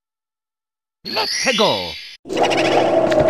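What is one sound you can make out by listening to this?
A rapid swooping game effect sounds.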